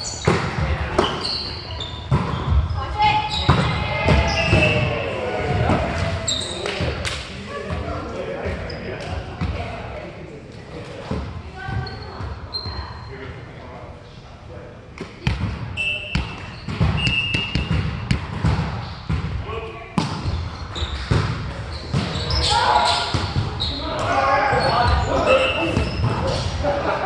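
Young men call out and talk to one another across the court.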